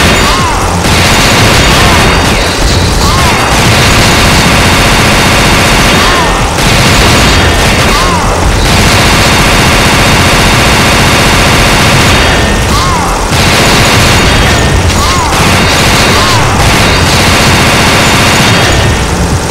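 Rapid gunfire rattles without a break.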